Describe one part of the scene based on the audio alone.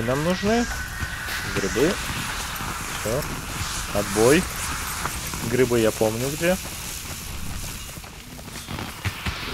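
A horse's hooves clop steadily on hard ground.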